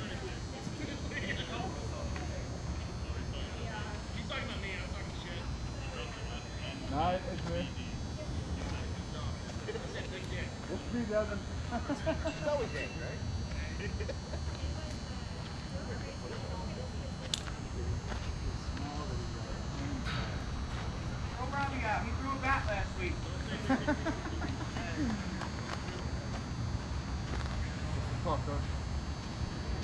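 Men talk and call out across an open outdoor field.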